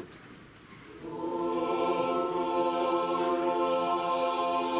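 A choir sings together in long, held notes.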